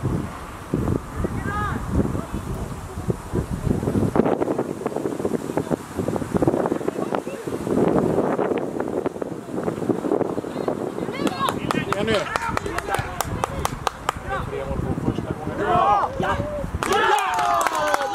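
Wind blows across the microphone outdoors in gusts.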